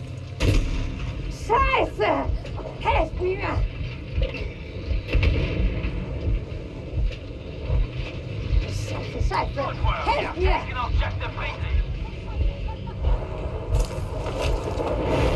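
Gunfire and explosions thump and crack repeatedly.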